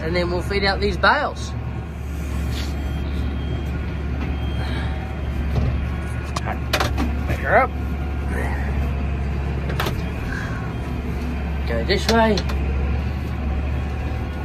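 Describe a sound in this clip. A tractor engine hums steadily from inside the cab.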